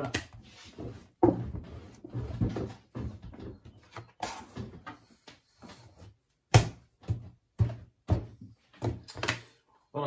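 Dough thumps and slaps on a wooden table.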